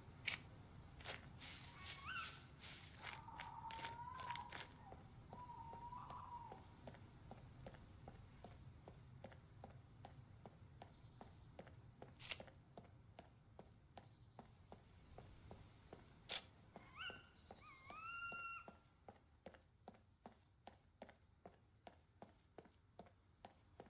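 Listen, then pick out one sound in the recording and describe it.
Footsteps tap steadily on pavement.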